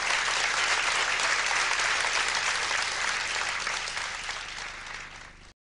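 A large crowd cheers and applauds loudly, then the applause fades away.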